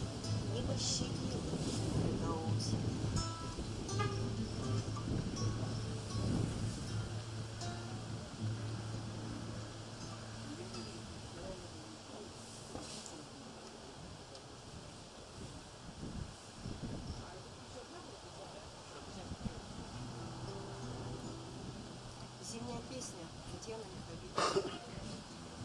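An acoustic guitar is strummed and picked.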